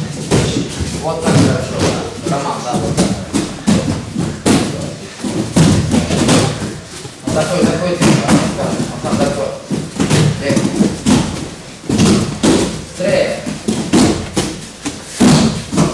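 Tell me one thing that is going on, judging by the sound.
Bodies thump and slap onto padded mats again and again.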